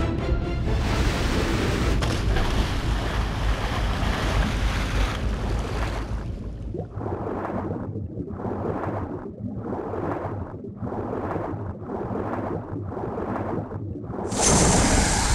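Water rushes and swishes in rhythmic surges as something swims underwater.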